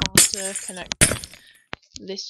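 A block breaks with a short crunch.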